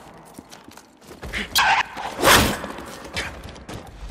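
A wolf snarls and growls.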